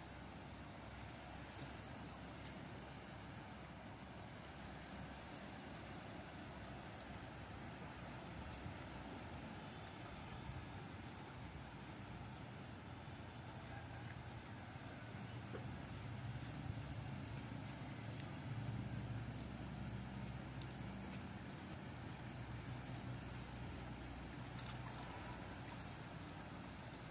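Small stones splash into water now and then.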